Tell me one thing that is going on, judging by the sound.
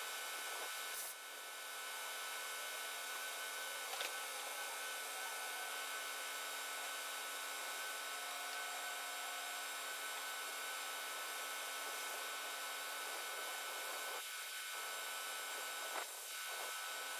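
Metal parts clank now and then as a man works on a heavy machine's track.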